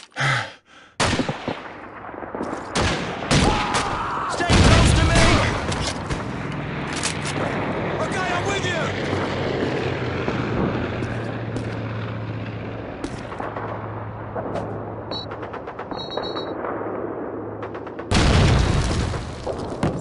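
Gunfire cracks and rattles in rapid bursts.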